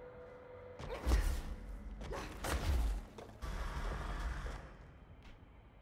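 Loud explosions boom and debris crashes.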